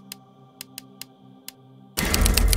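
Short menu clicks sound.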